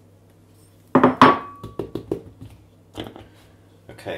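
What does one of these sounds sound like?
A plastic bottle knocks and rattles.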